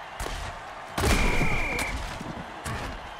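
Armoured players crash together in a heavy tackle.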